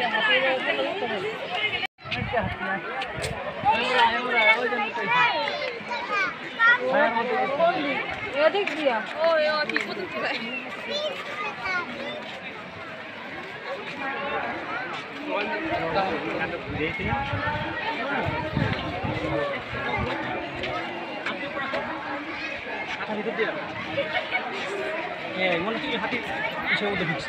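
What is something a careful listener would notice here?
A crowd of men, women and children chatter and call out close by, outdoors.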